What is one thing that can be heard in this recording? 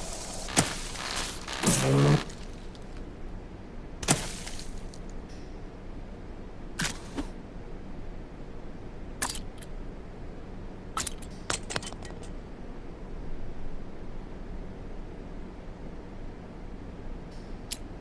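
Mechanical parts clunk and click as pieces are pulled from a robot.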